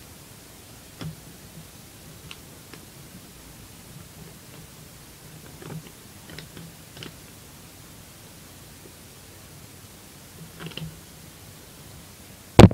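Plastic parts click and knock as they are handled close by.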